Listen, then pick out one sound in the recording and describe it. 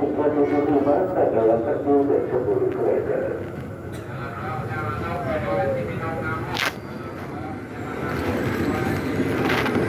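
A crowd of men and women chatters nearby in an echoing space.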